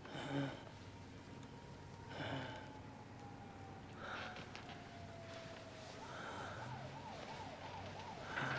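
A man snores loudly in his sleep, close by.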